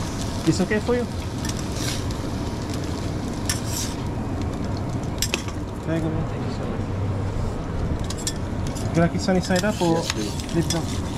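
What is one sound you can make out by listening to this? Eggs sizzle on a griddle.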